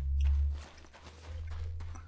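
A crossbow fires with a sharp twang.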